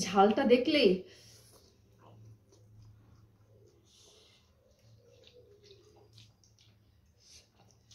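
Two young women slurp noodles.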